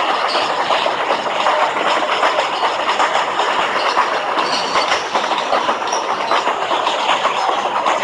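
A game train rumbles steadily along its track.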